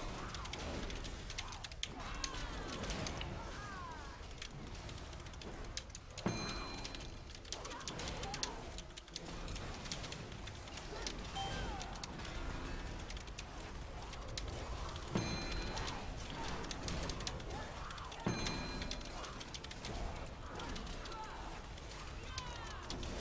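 Game spell effects crackle and zap with electric bursts.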